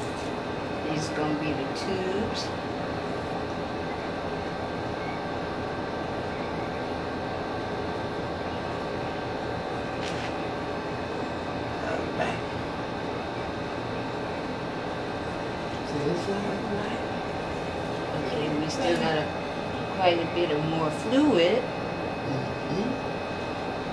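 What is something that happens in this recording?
A woman talks briefly and quietly nearby.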